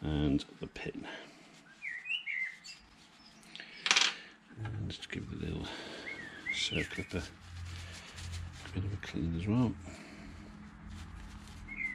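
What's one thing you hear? A cloth rustles as hands wipe a small metal part.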